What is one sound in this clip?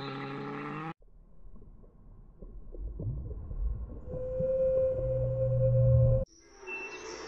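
A whale calls with low, drawn-out moans.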